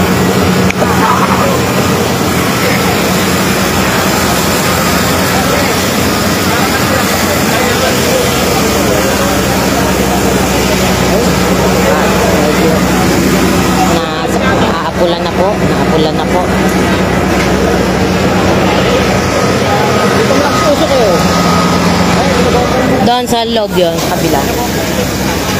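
A fire hose sprays water with a steady loud hiss.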